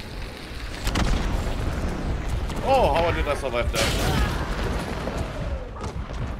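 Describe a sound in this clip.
Revolver shots bang loudly.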